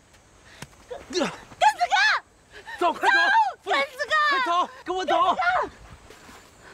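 A young woman calls out desperately.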